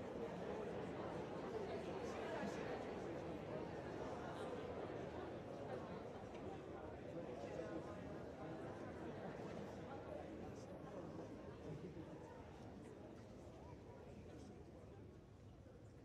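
A large audience applauds in an echoing hall and the clapping slowly fades.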